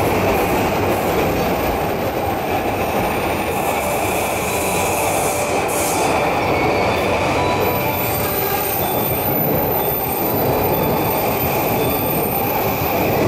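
An electric train rumbles past close by on the rails.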